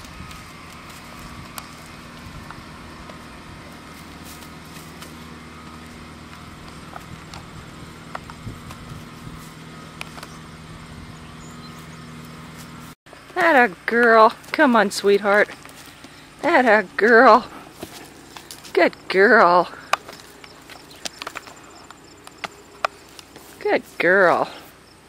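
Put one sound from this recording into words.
A horse walks with its hooves thudding on dry dirt.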